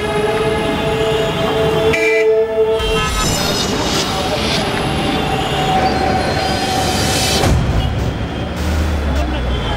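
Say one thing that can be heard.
A crowd murmurs in a busy street.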